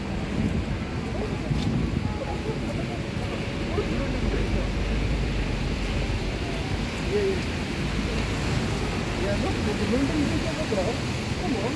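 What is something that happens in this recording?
Wind gusts outdoors, rumbling steadily.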